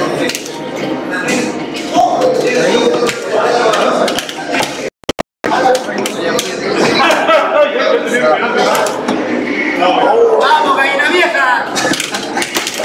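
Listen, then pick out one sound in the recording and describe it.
An arcade fighting game plays music and punching sound effects.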